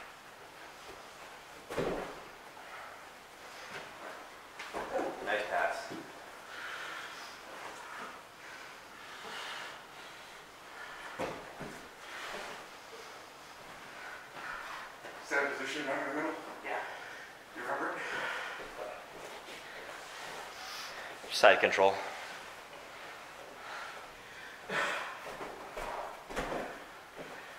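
Bodies thump and scuffle on a padded mat.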